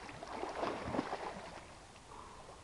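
A person splashes loudly into the water.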